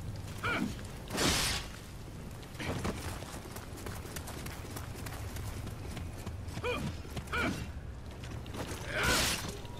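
Blades clash and clang with a metallic ring.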